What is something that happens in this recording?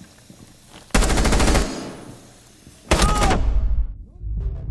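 A rifle fires a rapid burst of loud, echoing shots.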